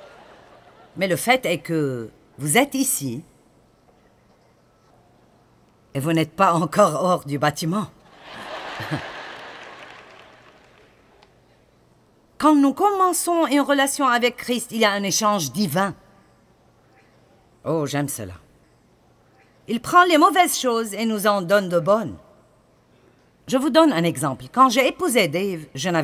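A middle-aged woman speaks with animation through a microphone.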